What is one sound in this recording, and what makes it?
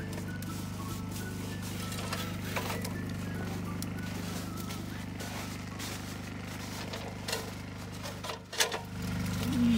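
A ladder clanks against a roof edge.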